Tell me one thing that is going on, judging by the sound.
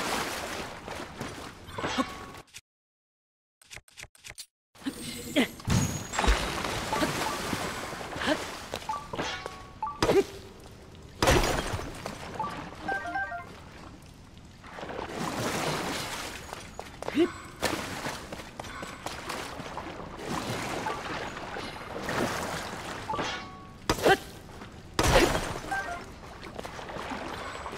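Water swishes as a figure wades through it.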